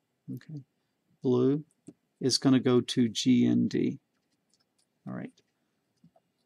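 An elderly man speaks calmly and close to a microphone, in short bursts.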